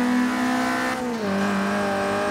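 A sports car engine drops in pitch as it shifts up a gear.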